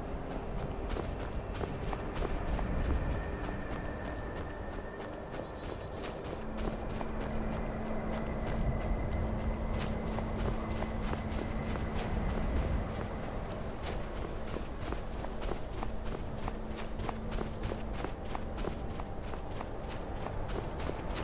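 Footsteps crunch through snow at a walking pace.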